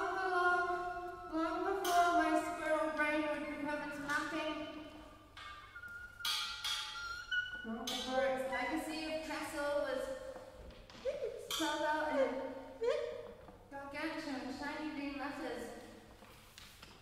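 Musical instrument notes ring out in quick, overlapping phrases in a large echoing hall.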